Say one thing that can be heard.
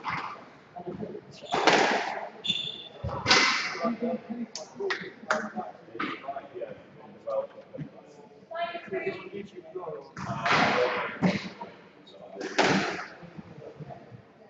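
A squash ball smacks sharply against the walls in a fast rally.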